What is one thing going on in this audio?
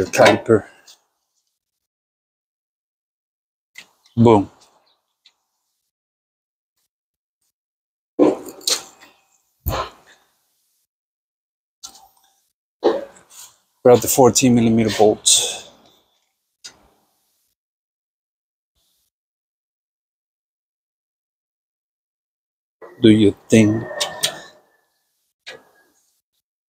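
Metal parts clink and clank as a brake caliper is handled.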